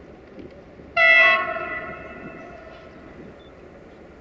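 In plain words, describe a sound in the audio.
A train horn sounds one long blast.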